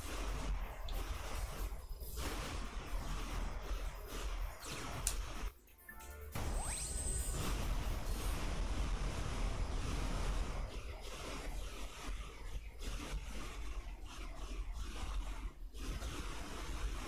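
Video game blasters fire rapidly with laser zaps.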